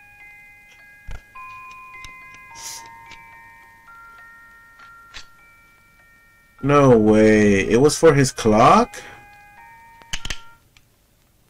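A clock chimes with soft ringing tones.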